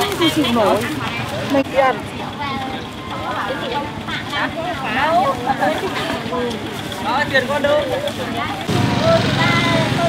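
A busy outdoor market murmurs with voices in the background.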